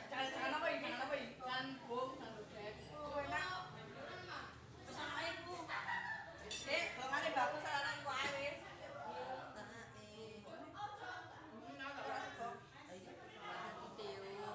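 Dishes and spoons clink on a table.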